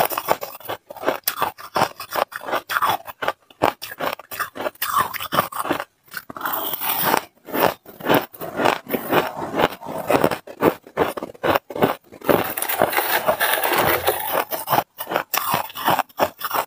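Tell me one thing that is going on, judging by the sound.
A spoon scrapes through shaved ice.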